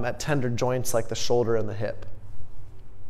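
A young man speaks calmly and close up through a microphone.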